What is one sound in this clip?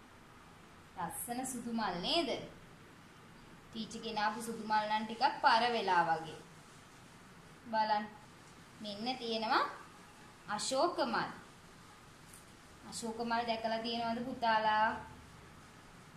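A young woman speaks calmly and clearly nearby, in short phrases with pauses.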